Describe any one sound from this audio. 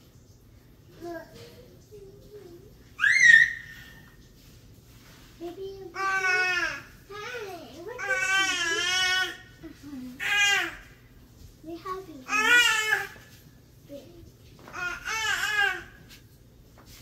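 A young child babbles and squeals nearby.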